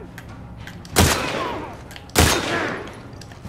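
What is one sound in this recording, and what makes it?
A rifle fires two loud shots that echo.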